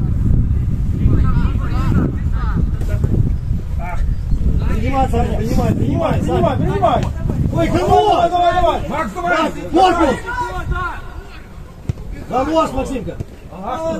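Young players shout to each other across a sports field.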